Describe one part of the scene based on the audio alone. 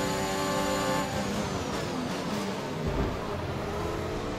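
A Formula One car engine drops in pitch as the car brakes and shifts down.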